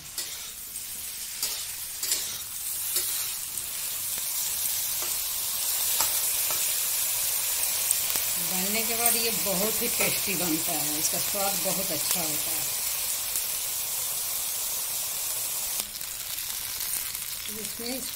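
Eggplant pieces sizzle and hiss as they fry in oil.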